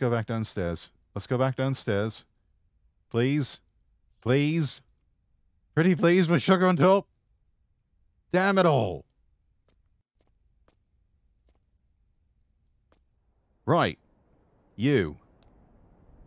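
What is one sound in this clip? A young man talks animatedly into a close microphone, in short bursts.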